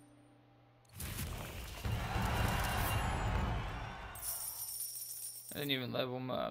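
A game's reward counter whirs and chimes as points add up.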